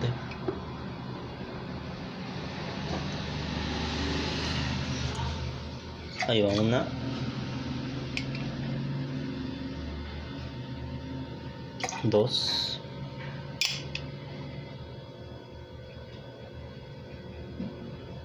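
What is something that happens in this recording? Liquid pours from a glass carafe into a metal jigger.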